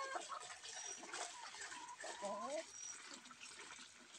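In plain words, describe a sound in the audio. A hen clucks nearby.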